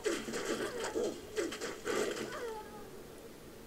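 Electric spells crackle and zap in quick bursts.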